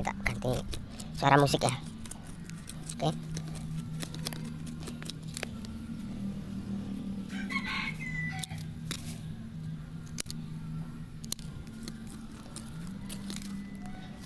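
Pruning shears snip with sharp clicks.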